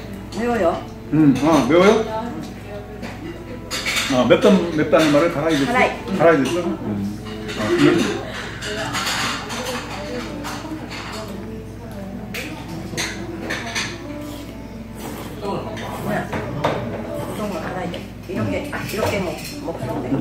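Chopsticks and dishes clink softly on a table.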